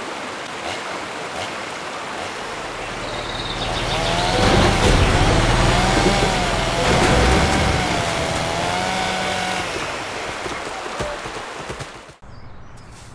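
A bus engine rumbles and roars as the bus speeds up.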